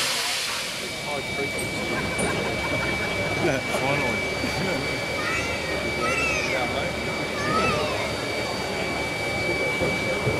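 Steam hisses softly from a locomotive.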